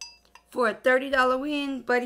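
A handbell rings.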